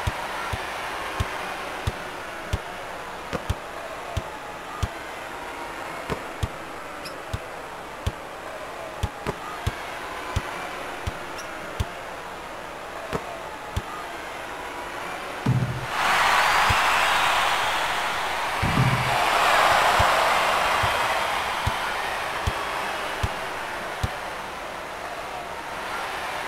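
A basketball bounces steadily on a wooden court.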